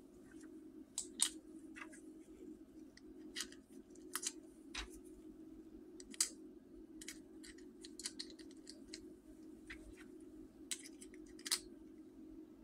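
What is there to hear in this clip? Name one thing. Small metal pieces click and clink together.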